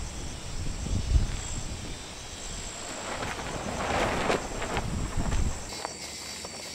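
A tarp flaps and rustles in the wind.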